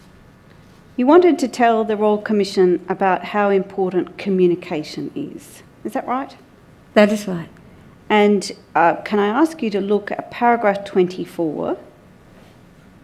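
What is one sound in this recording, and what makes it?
A middle-aged woman speaks steadily into a microphone.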